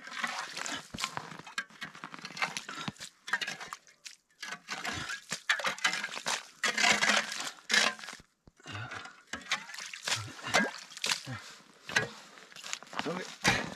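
A shovel scrapes and scoops slushy ice from a hole in lake ice.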